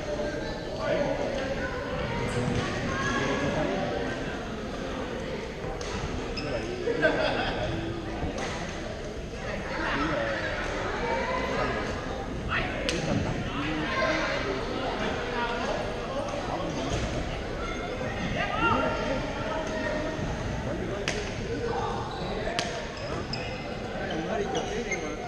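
Many people chatter in a large echoing hall.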